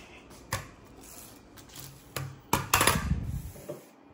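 A ceramic plate clatters onto a wooden table.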